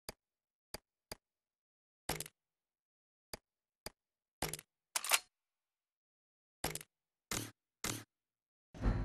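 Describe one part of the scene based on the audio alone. Short game menu clicks and chimes sound one after another.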